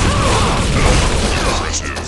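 A rail gun fires with a sharp zap.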